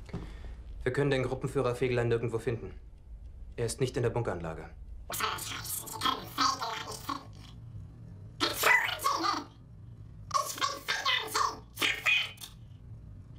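A young man speaks calmly and formally.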